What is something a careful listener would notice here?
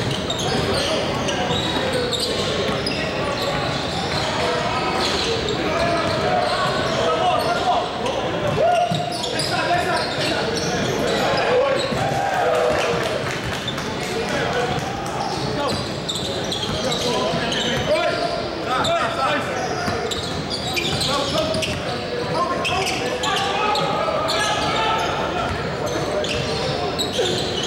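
Young men shout and call out to each other across a large echoing gym.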